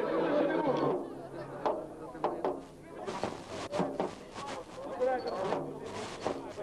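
A crowd of people talk and murmur close by.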